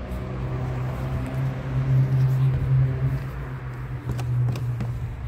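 Fabric rubs and rustles close against the microphone.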